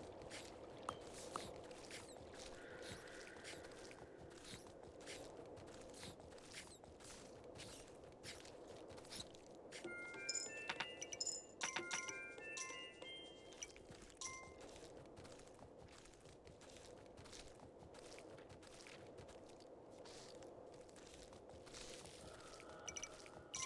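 Hooves clop steadily as a horse trots along.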